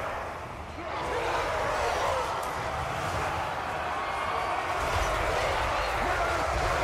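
A large battle roars with clashing and shouting in the distance.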